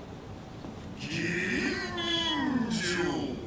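A man with a deep, processed voice speaks calmly and close.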